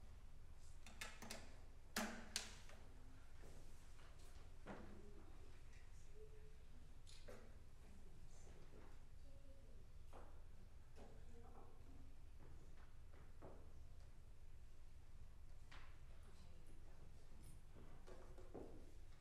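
Wooden instruments knock and bump softly as they are lifted and set on stands.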